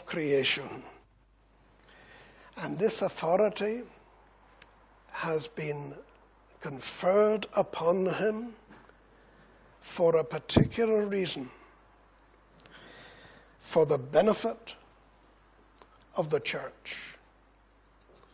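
An elderly man speaks with emphasis into a microphone, pausing between phrases.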